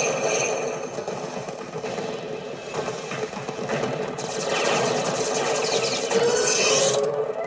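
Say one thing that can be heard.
Video game blasts and explosions crackle through a small loudspeaker.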